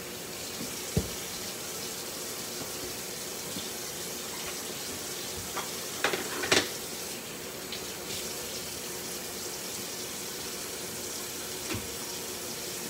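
Dishes clink and knock in a sink now and then.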